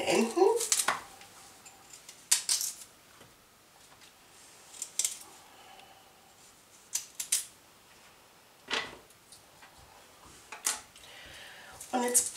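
A knife scrapes and peels a carrot in short strokes.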